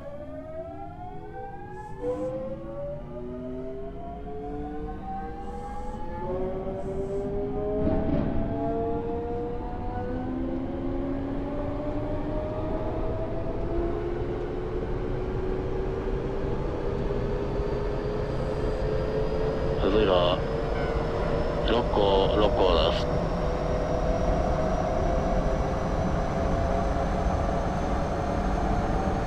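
An electric train motor whines, rising steadily in pitch as the train speeds up.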